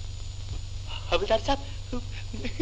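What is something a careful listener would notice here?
A man speaks cheerfully close by.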